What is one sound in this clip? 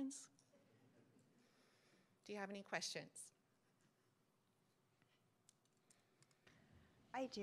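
A woman speaks calmly through a microphone in a large room with some echo.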